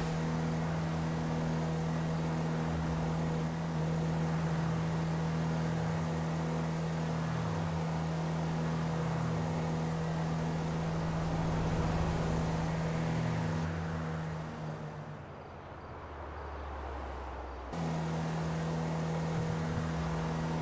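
A car engine hums steadily at low revs.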